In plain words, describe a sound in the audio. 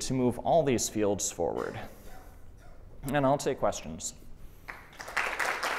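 A young man speaks calmly into a microphone in a large hall.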